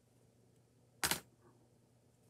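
Metal forceps clack down on a hard surface.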